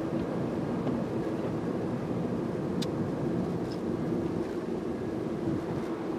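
A car engine hums steadily from inside the cabin as the car drives.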